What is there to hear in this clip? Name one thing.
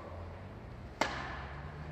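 A tennis racket strikes a ball with a sharp pop in a large echoing hall.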